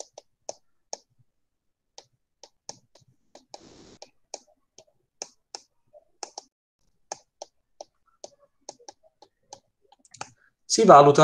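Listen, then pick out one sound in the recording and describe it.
A stylus taps lightly on a tablet while writing.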